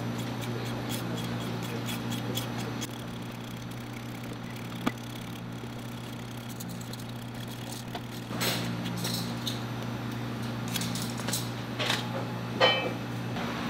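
A knife scrapes and shaves thin strips off a root.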